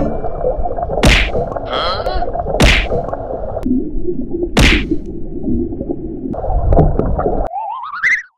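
Swimmers' kicks splash and thump through the water.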